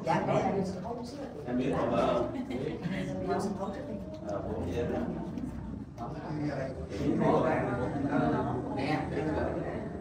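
Several adults chat and talk over one another nearby.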